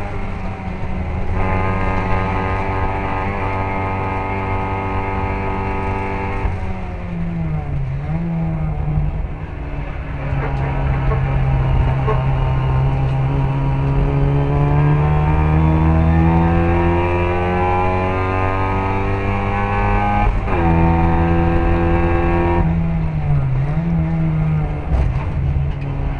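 A racing car engine roars loudly close by, revving up and down through the gears.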